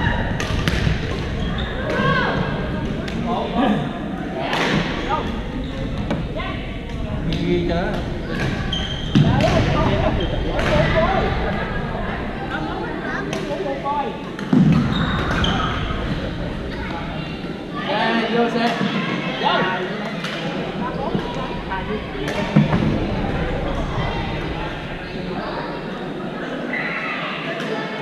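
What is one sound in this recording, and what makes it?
Rackets strike shuttlecocks with sharp pops in a large echoing gym.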